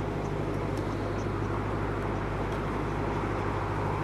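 A van drives past on a road.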